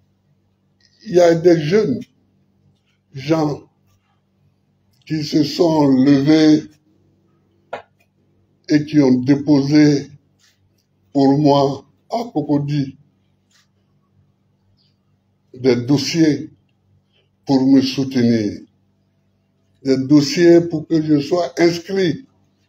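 An elderly man speaks calmly into microphones in short phrases with pauses.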